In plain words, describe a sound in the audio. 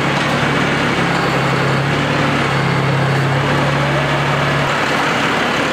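A tractor engine revs up as the tractor moves off.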